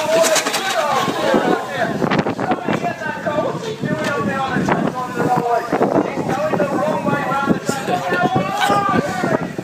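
Small electric model cars whir as they race past on a track.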